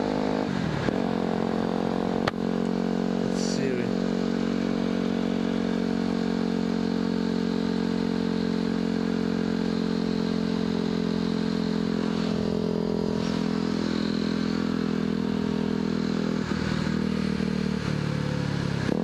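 A single-cylinder dual-sport motorcycle cruises at a steady speed.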